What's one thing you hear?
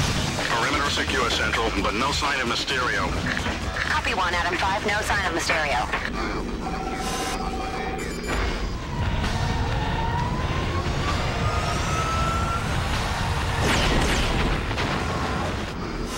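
A heavy robot stomps with clanking metal footsteps.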